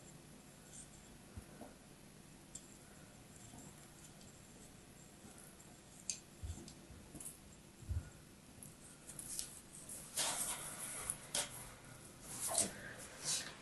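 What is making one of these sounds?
A blade scrapes and crumbles soft kinetic sand.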